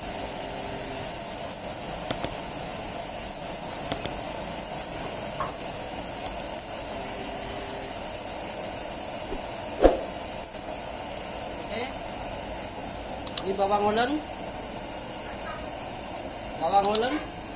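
A gas burner hisses.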